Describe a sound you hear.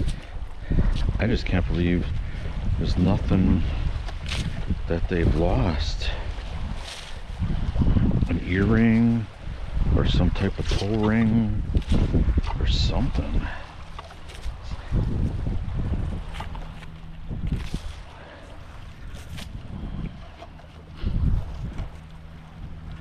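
Footsteps shuffle softly on sand.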